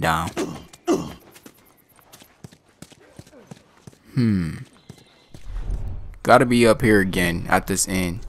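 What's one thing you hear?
Footsteps shuffle softly over a hard floor.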